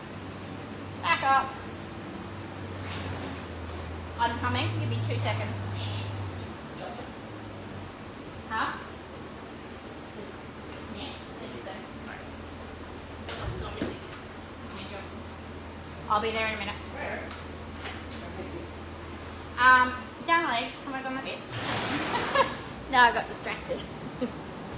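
A young woman talks casually close by.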